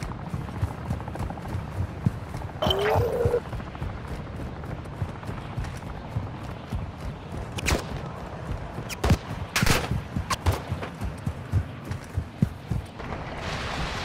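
Footsteps crunch quickly over sand.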